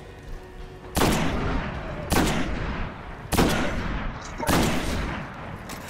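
A sniper rifle fires single sharp shots that echo.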